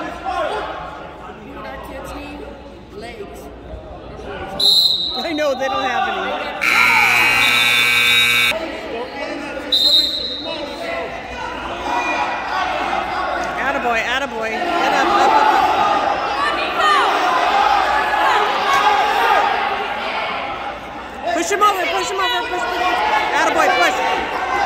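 Spectators shout encouragement loudly in an echoing gym.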